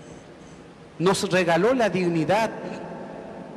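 A man chants through a microphone, echoing in a large hall.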